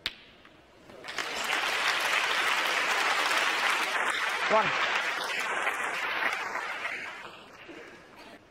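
An audience applauds loudly, then fades.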